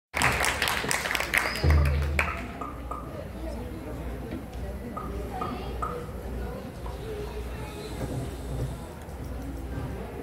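A choir of girls sings together in a large hall.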